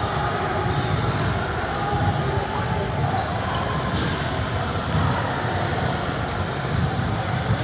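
Young players chatter and call out in a large echoing gym.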